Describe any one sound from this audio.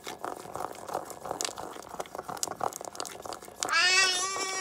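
Fingers tap on a plastic toy tablet.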